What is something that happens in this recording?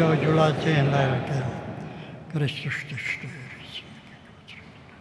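An elderly man speaks slowly into a microphone in a large echoing hall.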